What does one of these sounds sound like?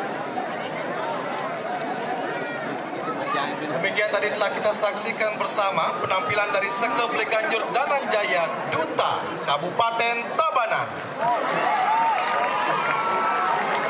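A man reads out through a microphone in a large echoing hall.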